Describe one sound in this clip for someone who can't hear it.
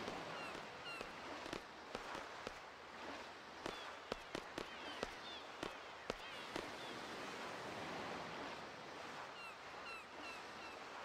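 Sea water washes steadily.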